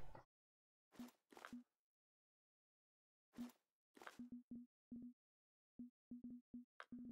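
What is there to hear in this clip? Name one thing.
Short interface clicks sound as menu items are selected.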